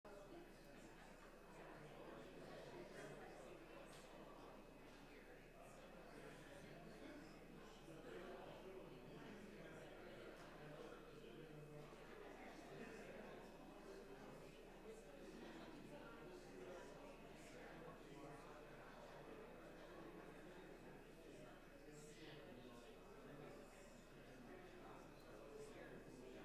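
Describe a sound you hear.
A crowd of adults murmurs and chats quietly in a large echoing room.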